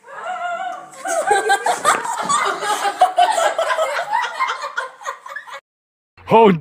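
A young woman shrieks and laughs close by.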